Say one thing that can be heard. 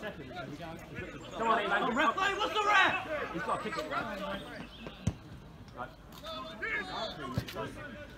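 Men shout and call out nearby outdoors.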